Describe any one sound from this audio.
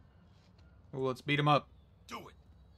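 A man says something curtly.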